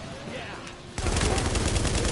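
A rifle fires in loud bursts.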